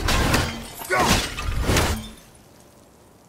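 Ice cracks and shatters as an axe strikes.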